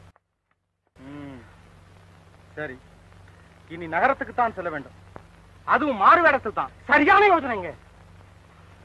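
A man speaks forcefully and angrily close by.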